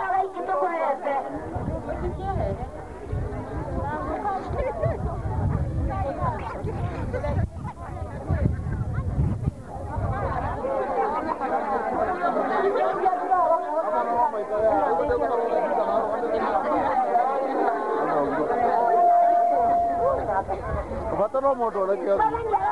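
A crowd of women sing together outdoors.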